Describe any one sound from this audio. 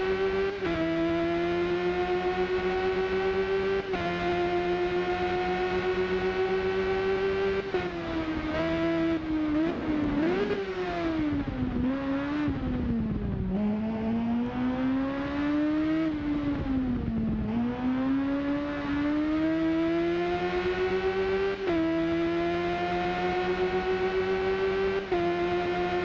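A motorcycle engine screams at high revs, shifting gears and dropping in pitch through bends before climbing again.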